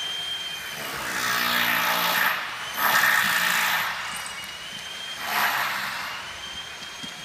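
Two dogs growl and snarl as they play-fight.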